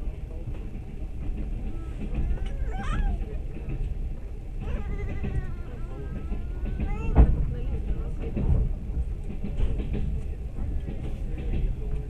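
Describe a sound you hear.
A vehicle rumbles steadily while moving.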